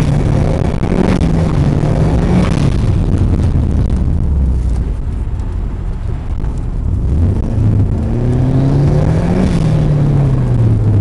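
A car engine hums and revs as the car drives.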